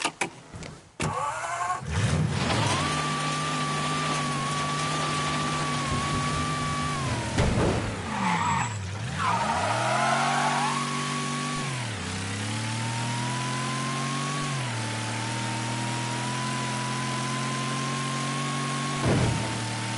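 A car engine starts and roars, revving up and down as the car drives.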